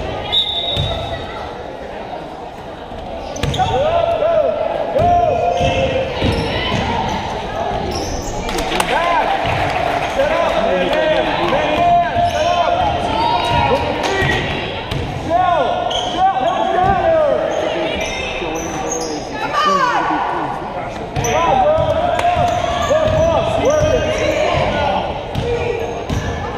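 A crowd chatters and cheers in a large echoing gym.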